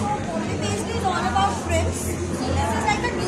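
A young woman talks nearby with animation.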